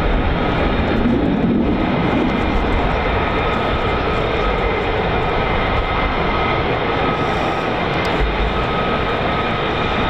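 Jet engines roar steadily as a fighter jet taxis close by.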